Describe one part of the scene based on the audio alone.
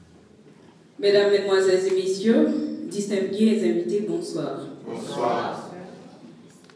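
A woman sings into a microphone, heard through loudspeakers.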